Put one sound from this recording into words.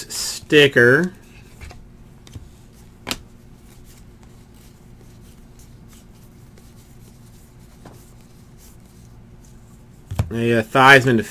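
Stiff cards softly flick and rustle against each other.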